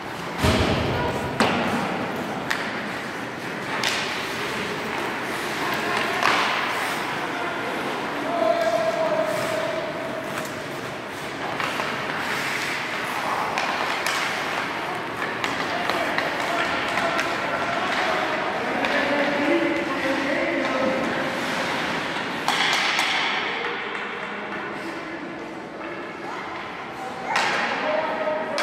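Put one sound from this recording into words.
Skates scrape and carve across ice.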